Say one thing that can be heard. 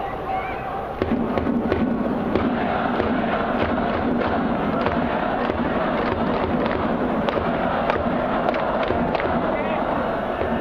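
Fans clap and bang noisemakers in a steady rhythm.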